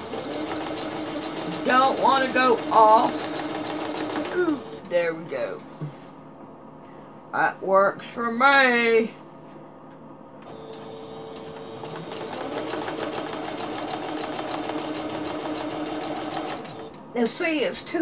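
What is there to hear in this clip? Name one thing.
A sewing machine whirs steadily.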